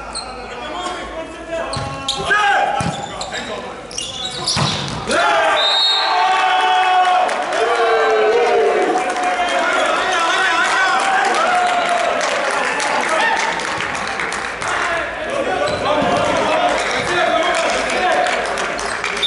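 Young men shout and call out loudly across a large echoing hall.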